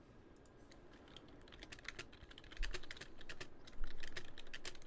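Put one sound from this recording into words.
A keyboard clatters with quick typing, close by.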